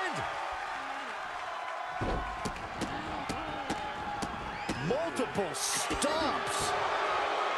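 A large crowd cheers and murmurs throughout.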